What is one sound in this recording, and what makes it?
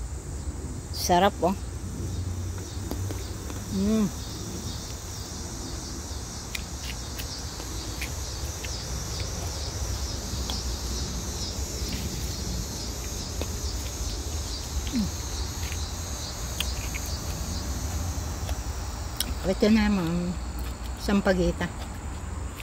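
An elderly woman speaks briefly and calmly close by.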